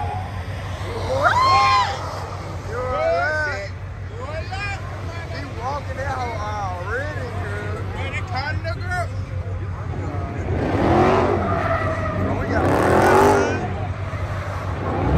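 Tyres squeal in long, wavering screeches as cars spin their wheels.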